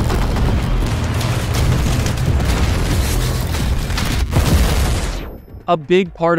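Heavy gunfire rattles loudly.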